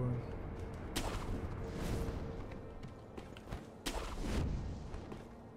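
A grappling hook whooshes as a figure swings up onto a wall.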